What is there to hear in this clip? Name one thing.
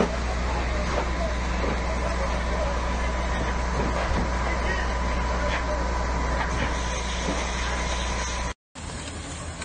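A large fire roars and crackles outdoors.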